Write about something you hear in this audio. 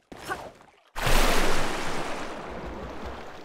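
Water splashes loudly as a body dives in.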